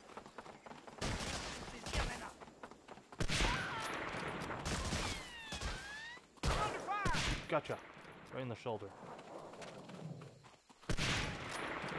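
Rifle shots boom and echo.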